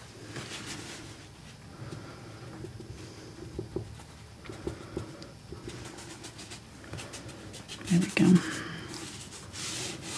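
A sponge dabs softly against a canvas.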